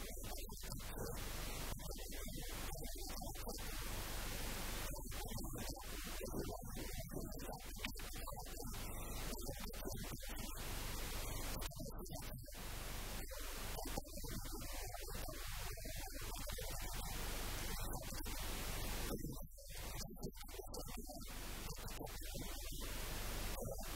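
An elderly man speaks into a handheld microphone up close.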